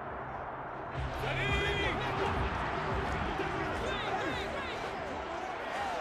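A stadium crowd cheers and murmurs steadily.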